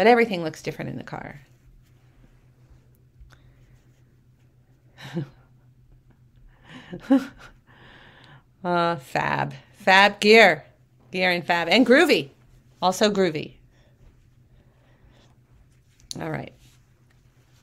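A woman talks with animation, close to a microphone, with pauses.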